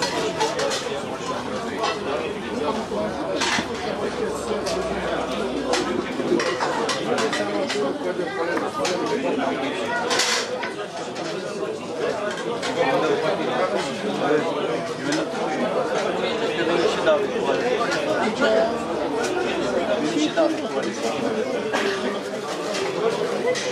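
Several men talk at once in a busy, chattering crowd.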